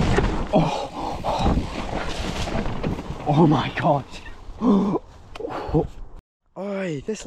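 Bicycle tyres rumble and crunch over a dirt trail with dry leaves.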